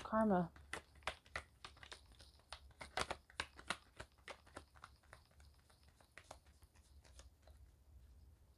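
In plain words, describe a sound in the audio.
Playing cards are shuffled with quick riffling flicks.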